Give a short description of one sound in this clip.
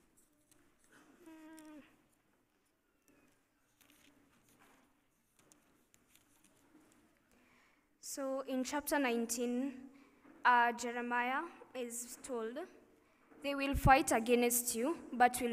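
A young woman speaks calmly into a microphone, heard through a loudspeaker system.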